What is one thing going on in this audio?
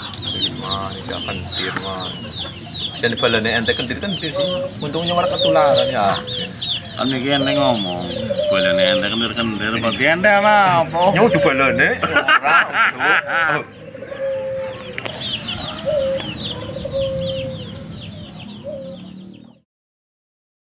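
A hen clucks softly.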